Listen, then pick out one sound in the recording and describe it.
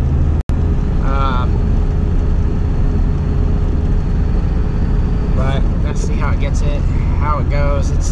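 A vehicle engine rumbles steadily from inside the cabin.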